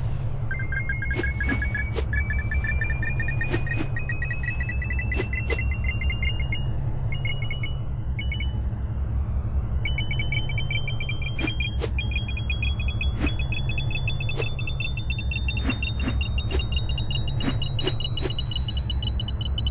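Coins chime in quick, rising runs as they are collected.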